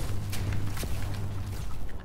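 An electric beam weapon crackles and hums in short bursts.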